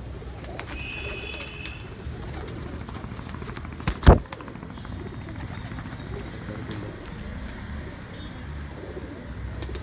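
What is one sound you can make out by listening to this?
A pigeon's feathers rustle softly up close.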